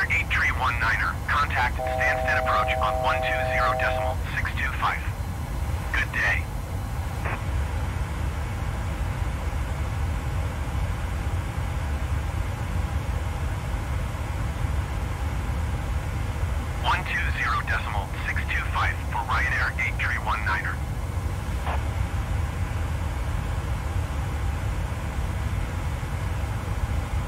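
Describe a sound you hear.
A jet engine drones steadily from inside a cockpit.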